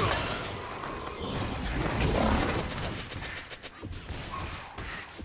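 Game spell effects crackle and clash in a fast fight.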